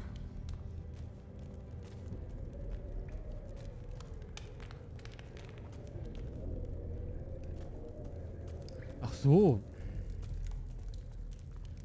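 A torch flame crackles and flutters.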